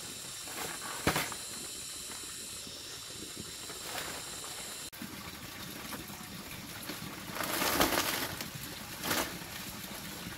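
Dry palm thatch rustles and crackles close by.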